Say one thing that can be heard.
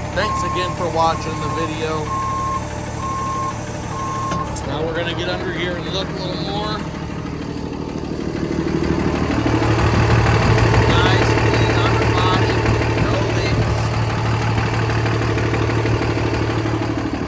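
A truck engine idles close by with a low, steady rumble.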